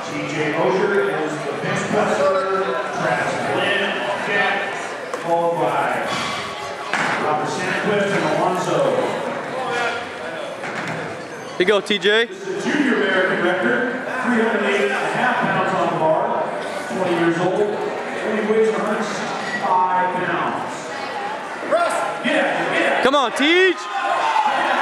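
A crowd of people chatters throughout in a large echoing hall.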